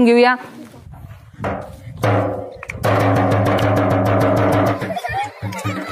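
A man beats a hand drum.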